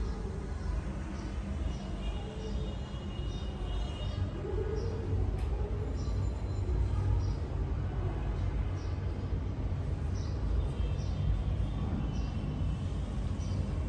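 Electric hair clippers buzz through a dog's fur.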